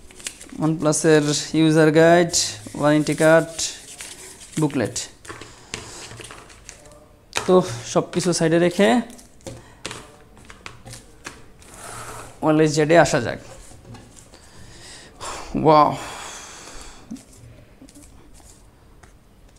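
Paper and cardboard packaging rustles and taps as it is handled.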